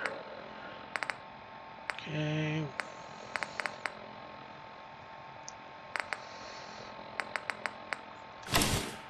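Soft electronic clicks tick as a menu is scrolled.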